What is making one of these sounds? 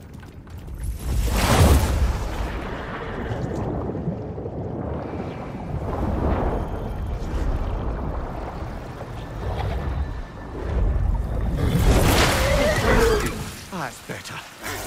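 Water rushes and bubbles underwater.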